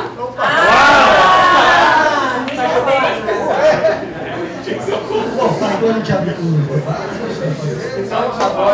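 A man speaks with animation to an audience in a room that echoes a little.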